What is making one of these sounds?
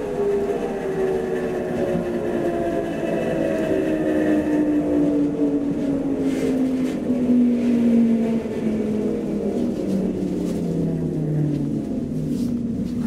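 A train's electric motor whines and falls in pitch as the train slows down.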